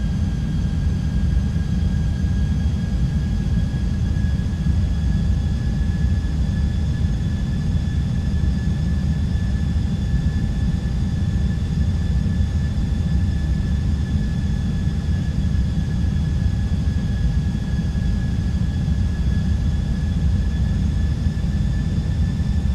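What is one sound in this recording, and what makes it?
A jet airliner's engines drone steadily with a low rumble and a faint high whine.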